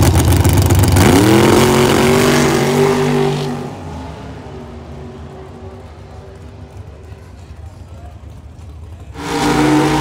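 A drag racing engine revs up and roars off down the strip, fading into the distance.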